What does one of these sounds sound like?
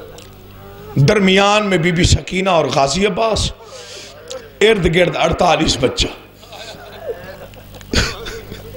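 A man recites loudly and passionately into a microphone, heard through loudspeakers.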